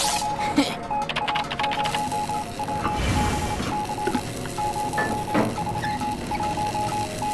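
A machine beeps in short, steady, repeating pulses.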